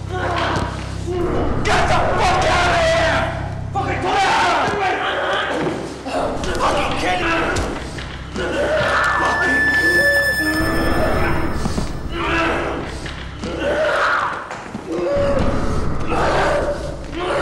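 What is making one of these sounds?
A man speaks in a strained, distressed voice close by.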